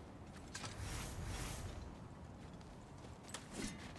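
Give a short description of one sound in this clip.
A heavy metal gate creaks open.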